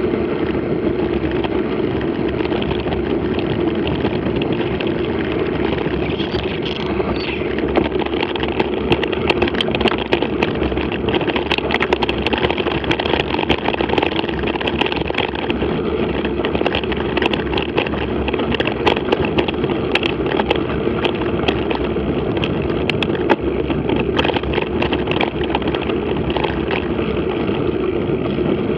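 Wind buffets loudly across the microphone.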